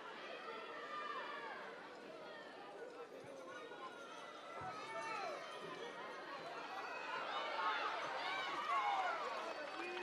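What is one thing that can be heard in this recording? A large crowd shouts and cheers, growing louder toward the end.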